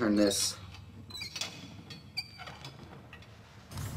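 A heavy metal valve wheel creaks as it turns.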